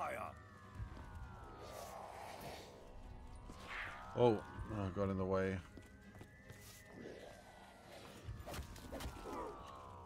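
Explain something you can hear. Gunshots and electronic zaps sound from a video game.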